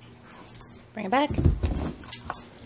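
A dog whines in a quick rising and falling cry.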